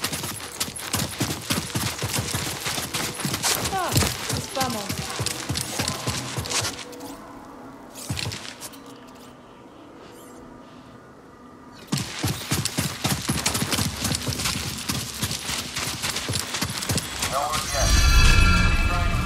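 Quick footsteps run over stone.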